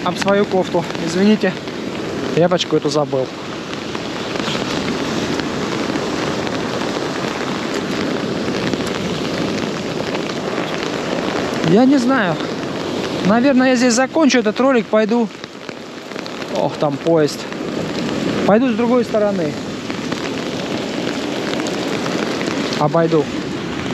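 Stormy sea waves crash and roar onto a pebble shore outdoors.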